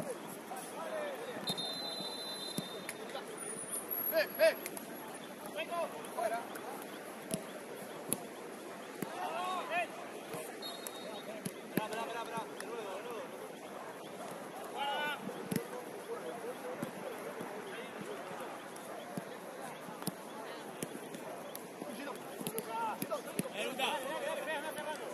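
Young men shout and call to each other across an open outdoor pitch.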